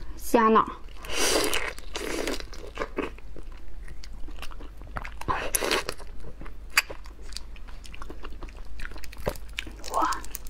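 A young woman chews and slurps loudly close to a microphone.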